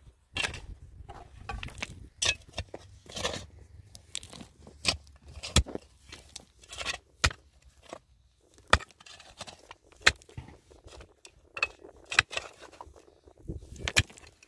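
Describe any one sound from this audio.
A shovel scrapes and clinks against stones and dirt.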